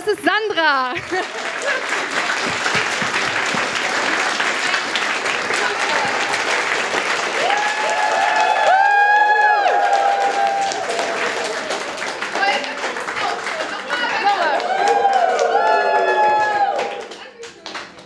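A crowd cheers and applauds loudly in a hall.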